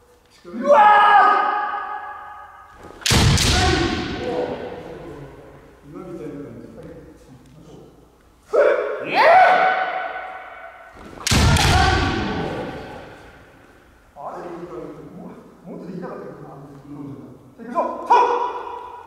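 Men shout loudly and forcefully, their cries echoing through a large hall.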